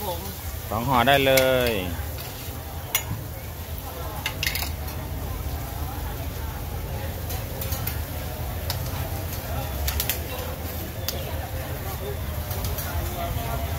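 A metal spatula scrapes and taps on a hot griddle.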